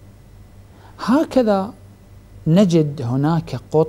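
A man speaks calmly and earnestly into a close microphone.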